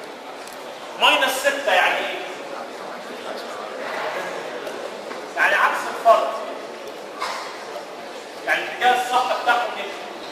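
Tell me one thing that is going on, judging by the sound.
A man lectures loudly in bursts.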